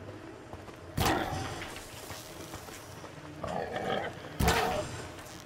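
A bow twangs sharply as arrows are loosed.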